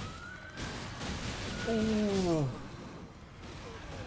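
A fiery blast bursts with a crackle.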